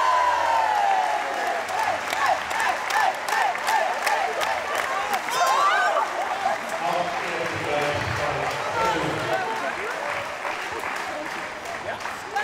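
A crowd claps and applauds in a large echoing hall.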